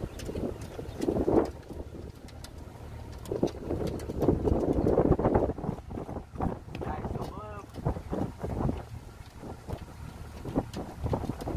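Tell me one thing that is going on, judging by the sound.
Water splashes and laps against a boat's hull.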